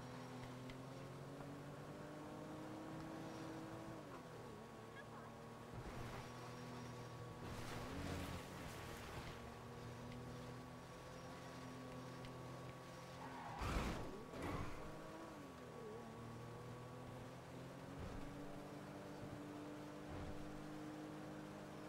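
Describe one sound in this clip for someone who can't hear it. A car engine hums steadily, its pitch rising and falling as the car speeds up and slows.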